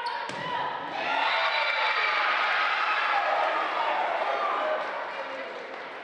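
Young women players shout and cheer together.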